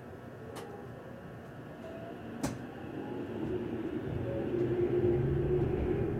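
Another train rushes past close by.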